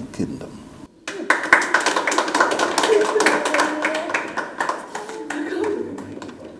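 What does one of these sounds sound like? A woman claps her hands.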